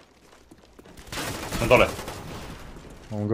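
Rapid gunfire bursts from an automatic rifle.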